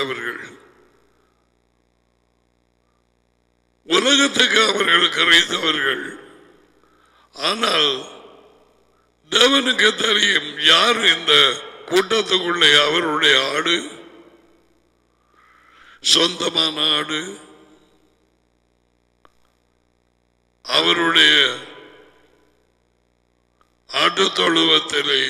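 A middle-aged man speaks with animation through a close microphone, in bursts with pauses.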